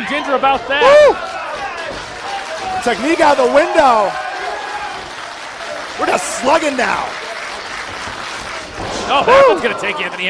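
Men in a crowd shout and whoop loudly in a large room.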